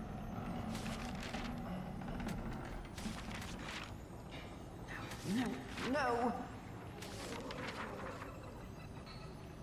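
A book's paper page turns over with a soft swish.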